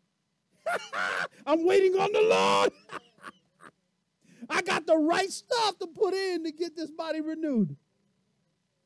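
A middle-aged man speaks with animation through a microphone in an echoing room.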